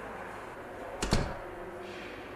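A door shuts with a thud.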